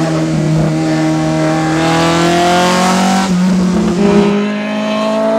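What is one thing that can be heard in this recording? A car engine roars steadily while driving.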